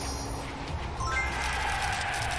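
A bright game chime plays a quick run of rising notes.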